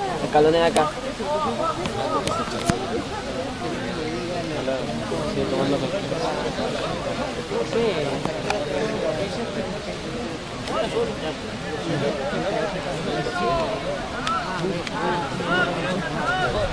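Several young women shout and call out to each other outdoors.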